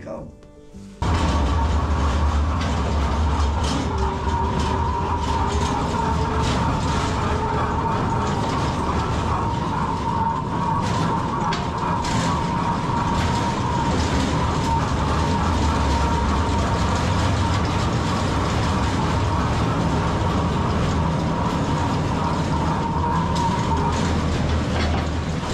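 A small mine train rumbles and clatters along rails.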